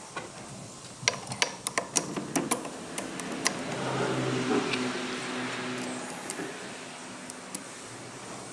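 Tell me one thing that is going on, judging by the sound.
Metal parts click and clink as hands work on an engine.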